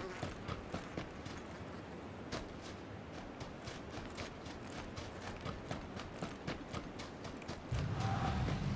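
Footsteps crunch quickly over grass and dry ground.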